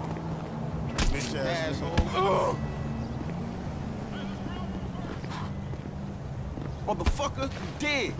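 Heavy blows thud as one man punches another.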